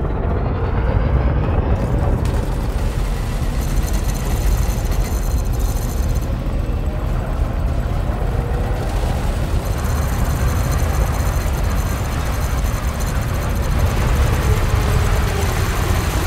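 A spacecraft engine rumbles steadily and deeply.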